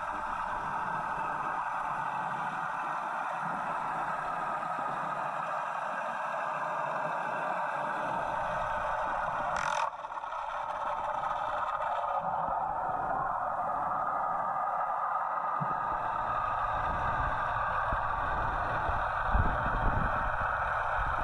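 Water rushes and murmurs steadily, muffled as if heard underwater.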